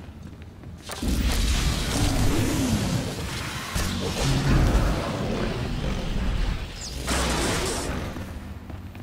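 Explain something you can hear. Lightning crackles and buzzes loudly in bursts.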